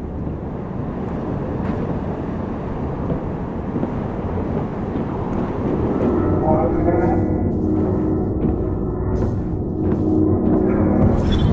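Heavy footsteps thud on a hard metal floor.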